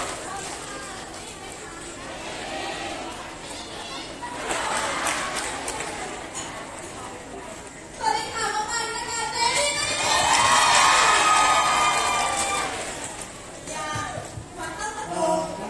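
A young woman speaks with animation into a microphone over loudspeakers.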